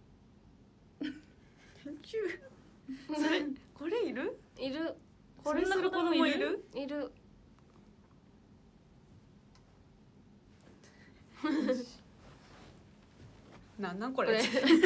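Young women speak and laugh brightly close to a microphone.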